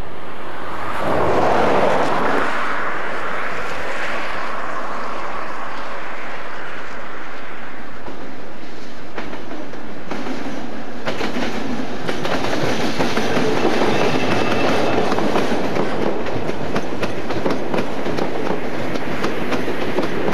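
A diesel train approaches and rumbles loudly past close by.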